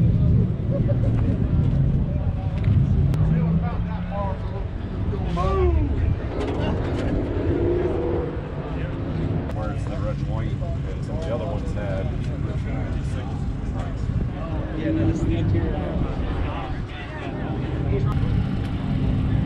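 Men and women chat casually in the background outdoors.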